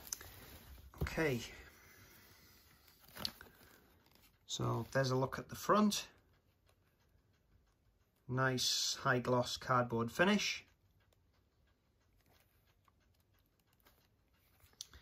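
Hands handle a cardboard sleeve with soft scuffs and taps.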